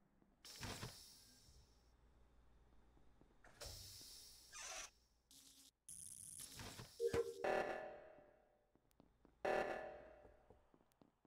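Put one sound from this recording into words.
Electronic game sound effects chime and whoosh in short bursts.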